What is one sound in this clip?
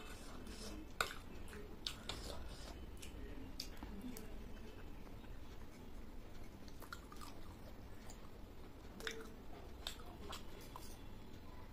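A woman chews and slurps food close to a microphone.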